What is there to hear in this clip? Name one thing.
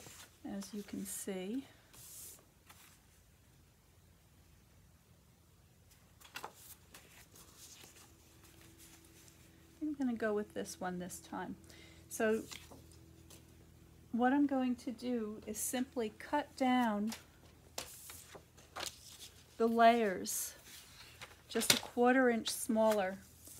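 Sheets of card rustle and slide against each other.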